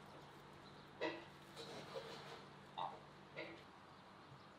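A goose honks a few times outdoors.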